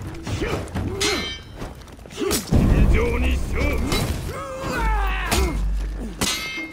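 Blades clash and ring sharply.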